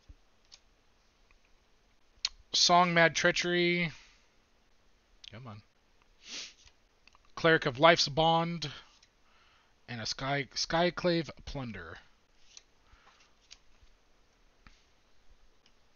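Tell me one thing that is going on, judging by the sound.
Playing cards slide and flick against each other in hands.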